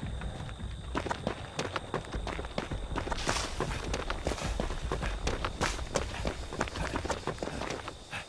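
Footsteps run quickly over dry ground and through rustling stalks.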